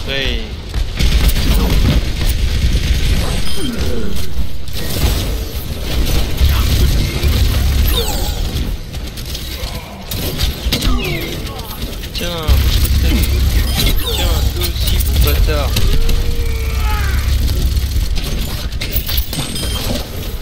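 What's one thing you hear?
Gunfire from a game rattles in rapid bursts.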